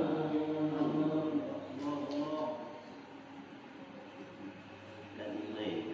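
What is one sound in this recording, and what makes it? Men chant in unison, reciting slowly in a room with a slight echo.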